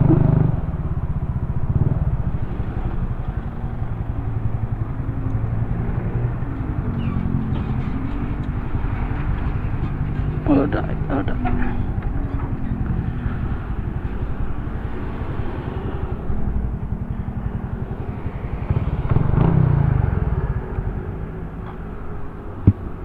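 A motorcycle engine idles close by with a steady rumble.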